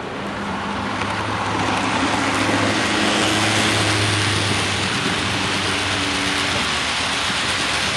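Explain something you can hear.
A model locomotive's motor hums loudly as it passes close by.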